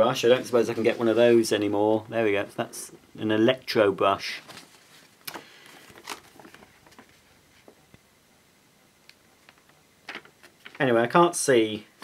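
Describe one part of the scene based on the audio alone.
Paper pages rustle as a booklet is handled.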